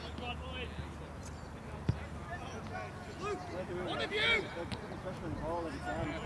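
Football players shout and call to each other across an open field.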